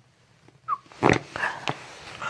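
A neck joint cracks with a sharp pop.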